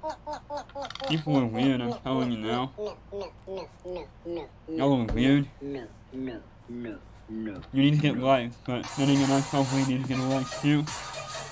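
A teenage boy talks with animation close to a microphone.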